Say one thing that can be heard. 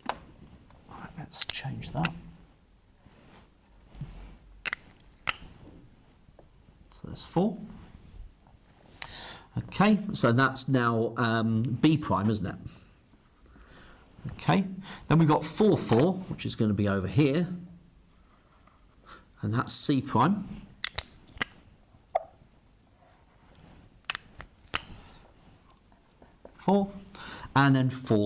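A man talks calmly and explains, close by.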